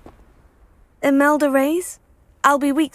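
A young woman speaks brightly and close by.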